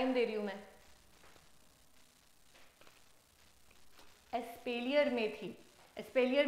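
A young woman speaks clearly and calmly into a close microphone.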